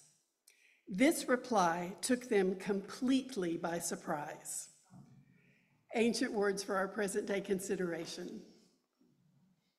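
An elderly woman reads aloud calmly through a microphone.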